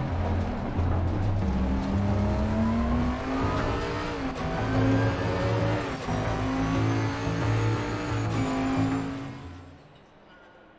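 A race car engine roars and revs up through the gears.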